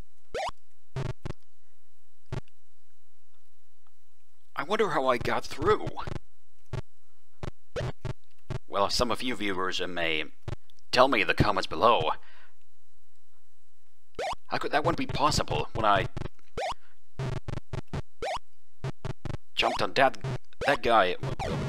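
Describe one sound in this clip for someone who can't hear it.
Short electronic blips sound as a retro game character jumps and moves.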